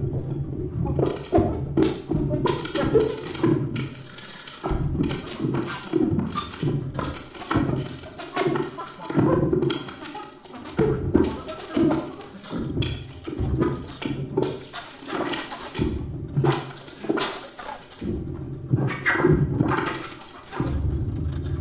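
Drums and cymbals strike in short bursts.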